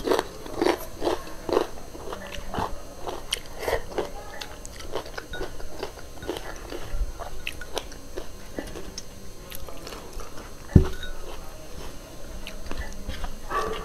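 A woman's fingers squish and mix rice in a metal pan.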